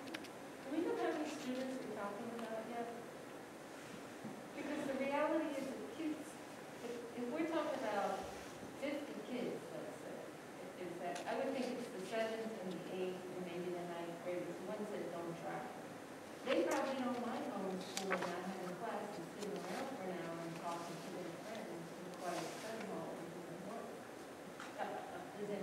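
A woman speaks calmly through a microphone in a large echoing room.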